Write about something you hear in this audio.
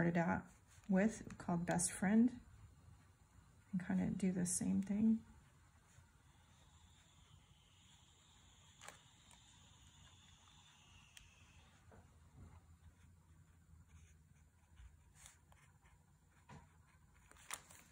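A brush strokes softly on paper.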